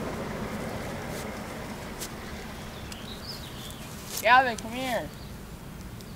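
Footsteps crunch softly on grass close by.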